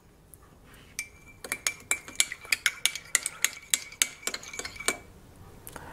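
A metal spoon clinks rapidly against the inside of a ceramic mug while stirring.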